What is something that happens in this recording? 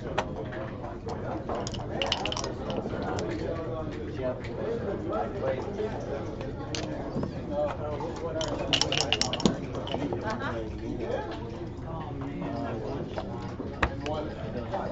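Checkers click as they are set down on a game board.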